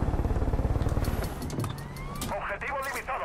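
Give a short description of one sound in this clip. A helicopter engine hums and its rotor thumps.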